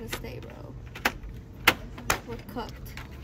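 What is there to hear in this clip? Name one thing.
A plastic shelf flap clicks as a hand lifts it.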